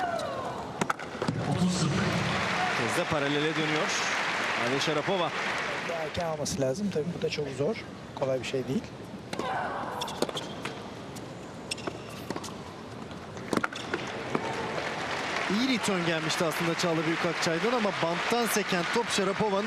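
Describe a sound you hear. A crowd in a large hall applauds and cheers.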